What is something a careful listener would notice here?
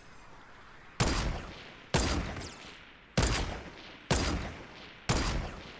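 A sniper rifle fires loud single shots that echo and fade.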